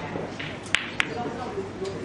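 Snooker balls knock together.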